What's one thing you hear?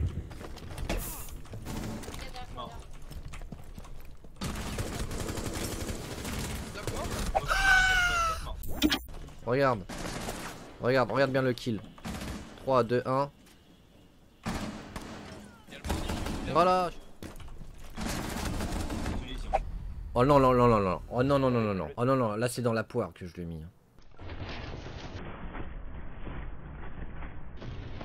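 Gunshots crack from a game.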